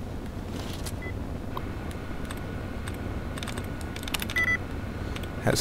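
Electronic beeps chirp from a computer terminal.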